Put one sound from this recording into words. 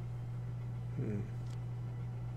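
A man briefly makes a short sound into a headset microphone.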